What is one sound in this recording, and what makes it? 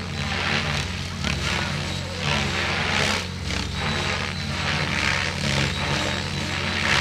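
A drone hovers overhead with a steady buzzing hum.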